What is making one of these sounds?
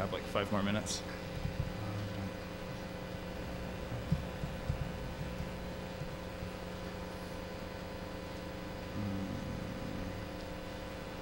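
A man speaks calmly and briefly into a microphone.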